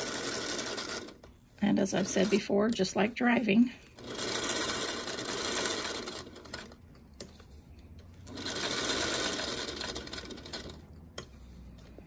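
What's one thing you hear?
A sewing machine whirs and stitches steadily, stopping and starting.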